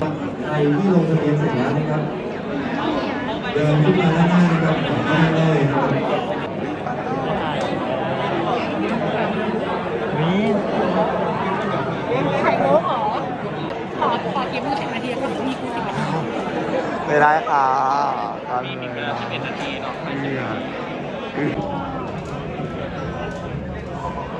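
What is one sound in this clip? A large crowd of young people chatters all around in an echoing hall.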